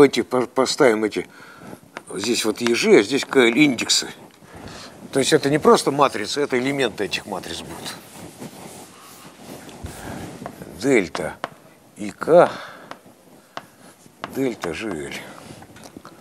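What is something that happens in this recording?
An elderly man lectures calmly in a large echoing hall.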